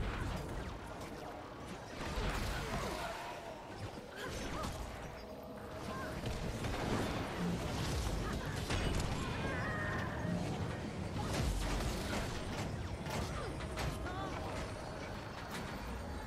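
Spell effects crackle and whoosh in a fast fight.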